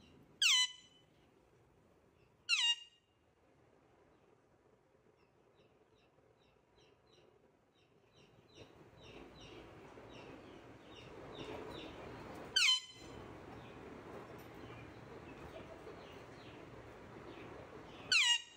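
A parrot gives loud, shrill screeches, now and then.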